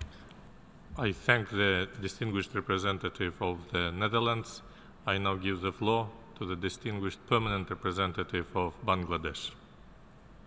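Another middle-aged man speaks steadily into a microphone.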